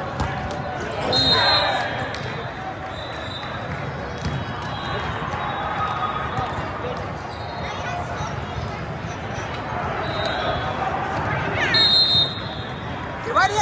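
Shoes squeak on the court.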